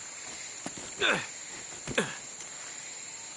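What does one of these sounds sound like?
A man grunts with effort while climbing a stone ledge.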